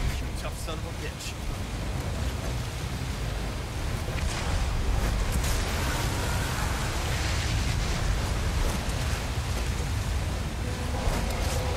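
Harpoons strike with sharp thuds.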